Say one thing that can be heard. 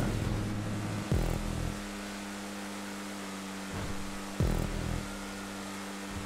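A race car engine drones steadily, with sudden surges as the gears shift.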